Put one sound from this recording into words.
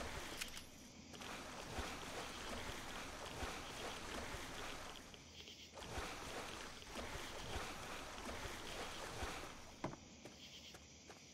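Footsteps splash and squelch through shallow water.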